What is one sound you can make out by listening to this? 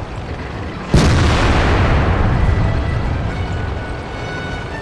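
A shell explodes nearby with a heavy blast.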